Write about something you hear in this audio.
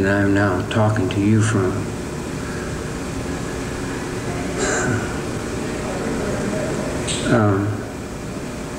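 A man speaks slowly and calmly in a low voice.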